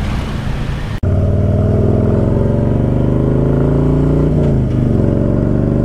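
A large motorcycle engine rumbles deeply and steadily.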